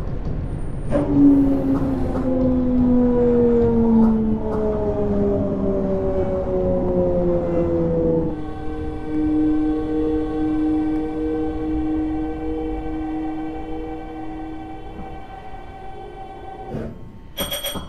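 A train's electric motor whines, falling in pitch and then holding a steady tone.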